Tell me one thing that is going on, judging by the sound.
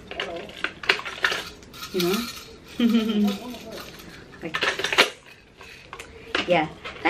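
Plastic toy pieces clatter and rattle in a person's hands.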